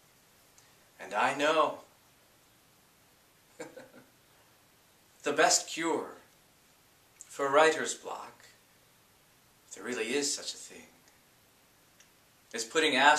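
A man speaks calmly and clearly in short phrases with pauses, close by.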